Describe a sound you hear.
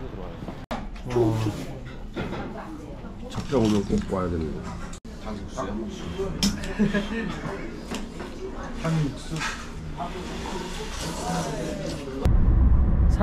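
Young men talk with animation and laugh close by.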